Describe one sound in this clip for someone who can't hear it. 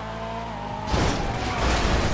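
A car crashes into another car with a loud thud.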